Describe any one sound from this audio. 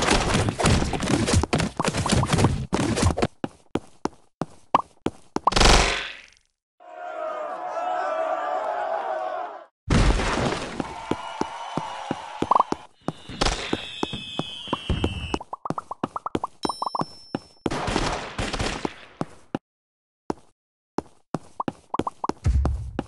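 Rapid game sound effects of splats and smacks pop in quick bursts.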